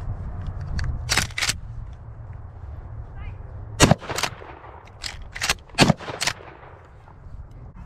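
A pump-action shotgun is racked with sharp metallic clacks.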